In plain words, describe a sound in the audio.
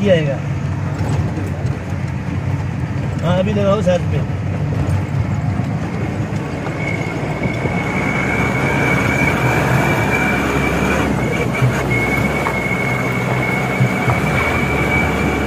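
An auto-rickshaw engine putters along a road ahead.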